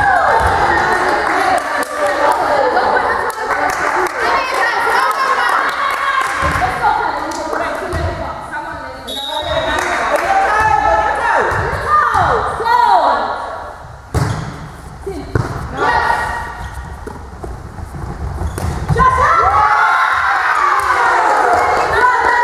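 Young women cheer and shout together in an echoing sports hall.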